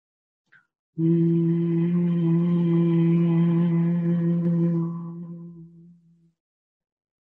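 A middle-aged woman hums one long, steady note that slowly fades.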